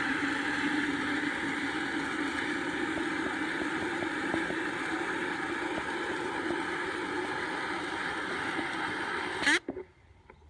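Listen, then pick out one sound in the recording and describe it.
Water from a hose nozzle splashes steadily into a plastic watering can, then abruptly stops.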